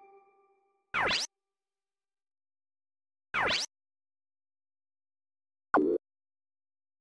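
Short electronic whooshes sound three times.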